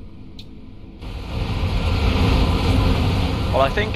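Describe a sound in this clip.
A bus engine rumbles loudly as the bus drives off.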